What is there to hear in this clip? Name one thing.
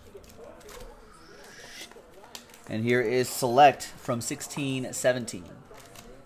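Trading cards shuffle and flick softly.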